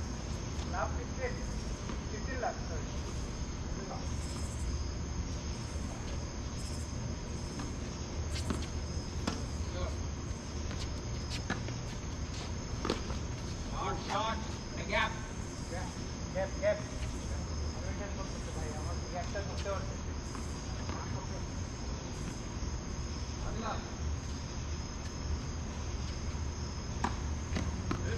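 Men call out to each other across an open outdoor court.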